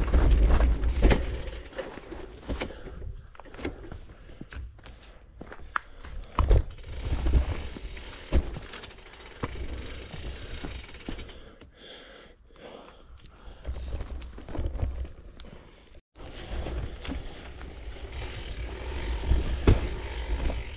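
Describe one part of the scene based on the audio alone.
A bicycle rattles over bumps in the trail.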